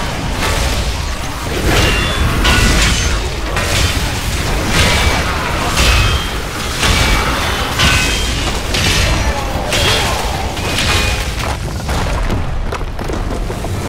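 Spell blasts and weapon hits crackle and boom again and again in a game battle.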